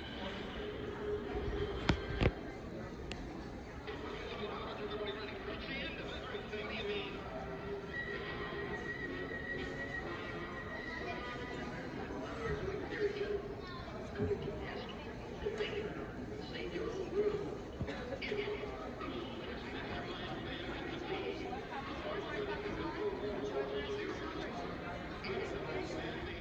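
A film soundtrack with music plays loudly through loudspeakers in a large hall.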